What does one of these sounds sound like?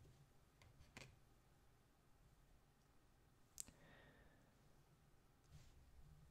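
Playing cards tap and slide softly on a wooden table.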